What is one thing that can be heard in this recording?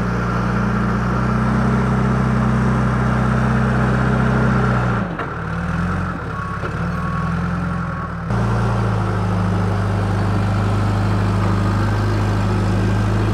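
A diesel engine of a backhoe loader rumbles steadily close by.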